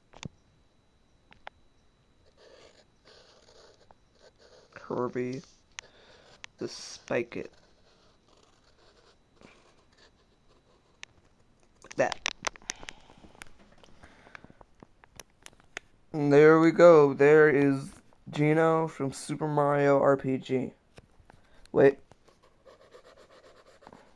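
A pencil scratches on paper.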